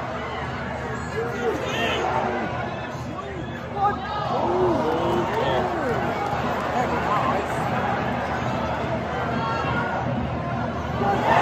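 Men in the crowd shout nearby.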